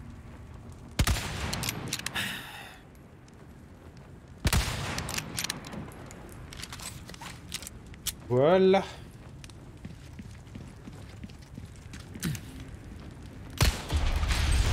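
Loud gunshots ring out with a short echo.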